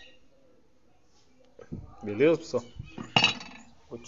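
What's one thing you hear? A metal plate taps down onto the ground.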